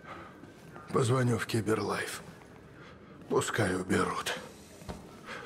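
An elderly man speaks with a shaken voice, close by.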